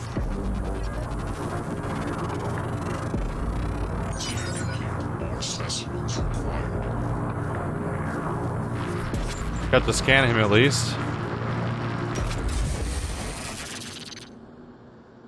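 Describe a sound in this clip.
A low electric hum drones steadily and then fades away.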